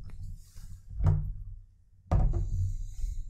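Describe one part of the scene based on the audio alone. A glass bottle knocks down onto a wooden table.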